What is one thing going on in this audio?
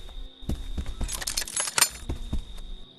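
Metal items clatter and rattle as they are picked up.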